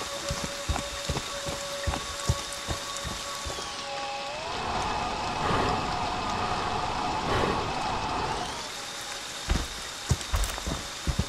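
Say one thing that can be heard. Heavy footsteps thud quickly on wet ground.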